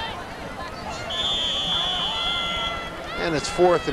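A referee's whistle blows a long shrill note.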